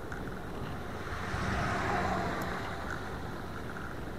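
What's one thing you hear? A truck passes by on the road.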